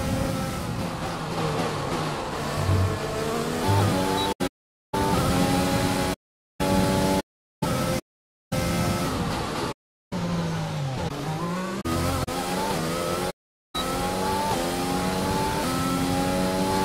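A racing car engine roars and whines up and down through its gears, cutting out now and then.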